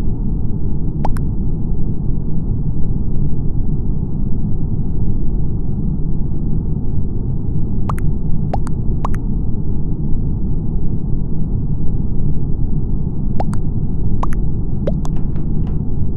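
Short electronic blips sound as game chat messages pop up.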